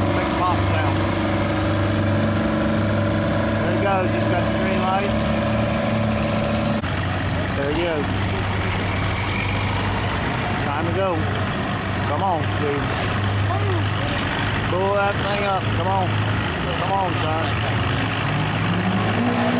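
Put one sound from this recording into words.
A diesel truck engine idles nearby.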